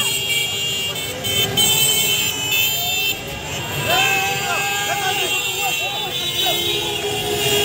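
A crowd of people shouts and cheers outdoors at night.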